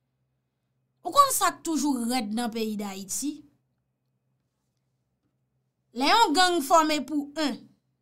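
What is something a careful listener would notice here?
A young woman speaks expressively and close up.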